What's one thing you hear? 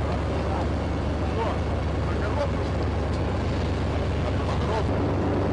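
A tank engine rumbles steadily nearby.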